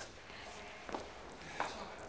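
A middle-aged man speaks warmly and close by.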